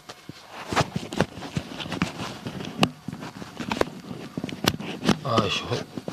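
Sharp knocks sound as a hand bumps against a microphone.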